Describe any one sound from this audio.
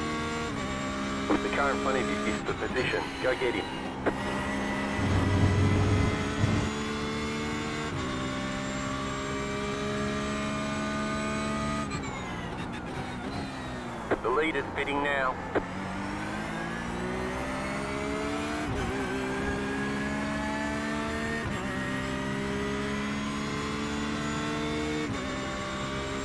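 A racing car engine roars steadily, rising in pitch through the gears and dropping as it brakes.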